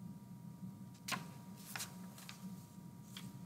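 A sheet of paper rustles as it is moved by hand.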